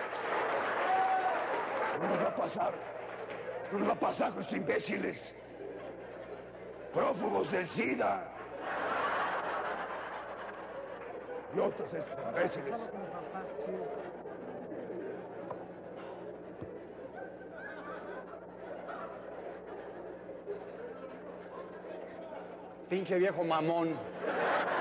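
An elderly man speaks slowly and dramatically on a stage.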